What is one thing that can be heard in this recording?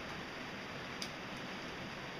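Pliers snip through wire with a small click.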